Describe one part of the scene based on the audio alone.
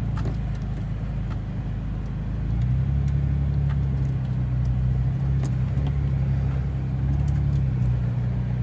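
A car engine rumbles steadily close by, straining louder uphill.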